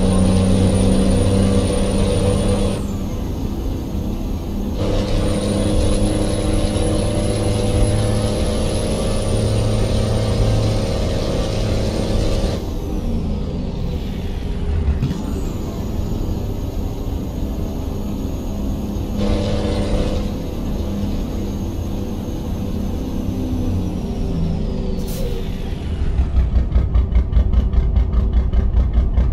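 A truck's diesel engine rumbles steadily and rises and falls with speed.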